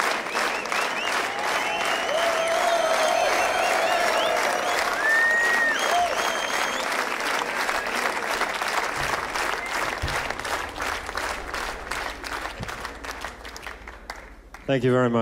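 A crowd applauds and cheers loudly in a large hall.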